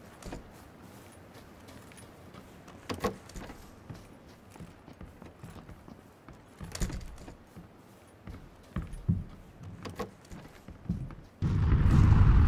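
Footsteps thud on wooden floors and stairs.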